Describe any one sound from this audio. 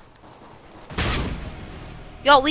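A gunshot rings out sharply.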